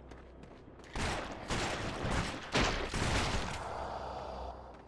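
A slashing strike lands with a burst of sound.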